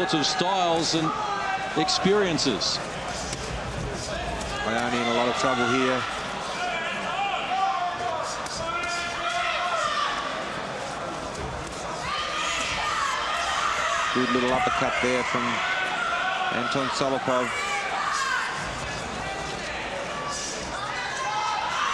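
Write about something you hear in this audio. Boxing gloves thud against a body in quick blows.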